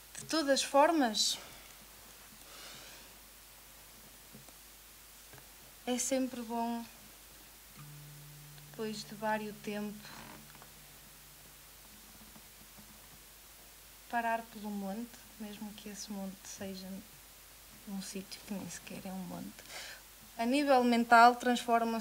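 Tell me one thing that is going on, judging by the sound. A woman speaks calmly into a microphone, in bursts with pauses.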